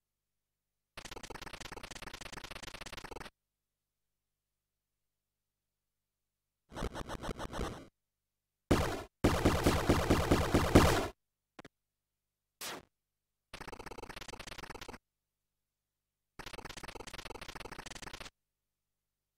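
Rapid electronic blips chatter as game text scrolls.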